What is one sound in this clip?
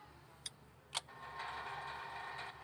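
A winch motor whirs steadily.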